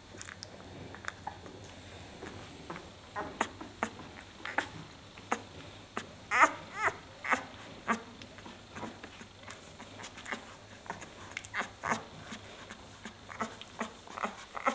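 Newborn puppies squeak and whimper close by.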